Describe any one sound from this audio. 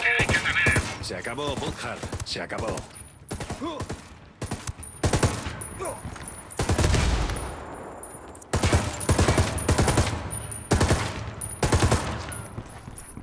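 Rapid rifle shots fire in bursts, echoing in a tunnel.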